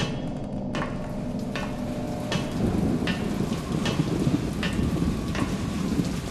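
Footsteps clank steadily on a metal walkway.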